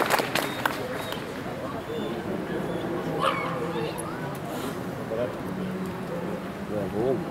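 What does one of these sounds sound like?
A man calls out commands to a dog from a distance, outdoors.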